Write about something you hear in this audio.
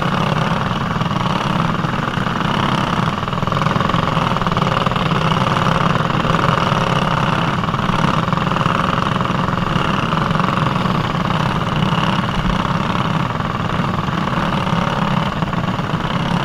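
A small kart engine buzzes loudly close by, rising and falling with the throttle.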